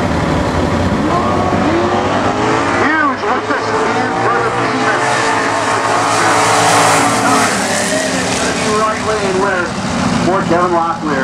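Two race cars accelerate hard, their engines roaring and rising in pitch as they shift gears.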